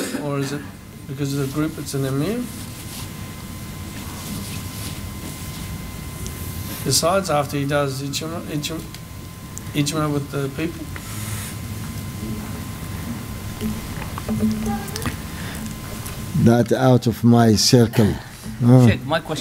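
An elderly man speaks slowly into a microphone, pausing often.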